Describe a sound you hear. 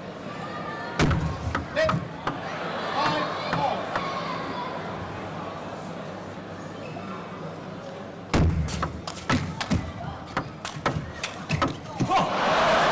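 A table tennis ball clicks back and forth on paddles and the table.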